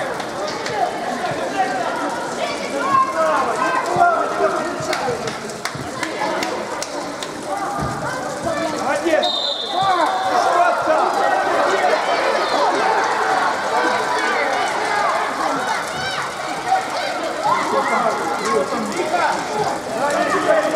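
Young players shout and call to each other across a large echoing hall.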